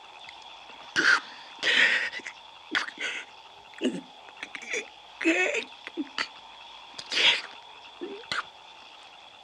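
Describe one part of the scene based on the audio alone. A wounded young man gasps and groans in pain, close by.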